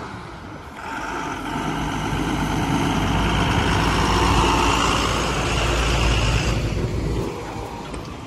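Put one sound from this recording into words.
A heavy truck's engine rumbles loudly as it approaches and passes close by.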